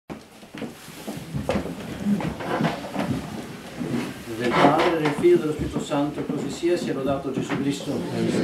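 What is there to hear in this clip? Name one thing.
A man chants in a steady sung voice, echoing in a wooden room.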